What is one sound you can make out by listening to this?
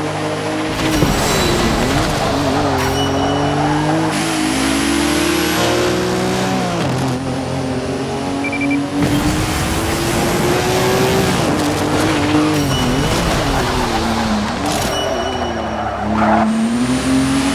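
Car tyres screech while drifting.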